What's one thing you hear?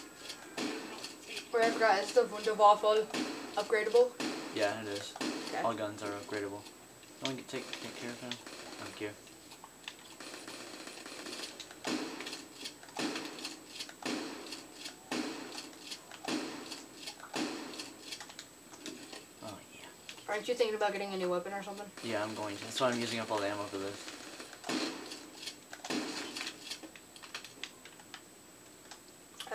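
Rapid gunfire rattles from a television speaker.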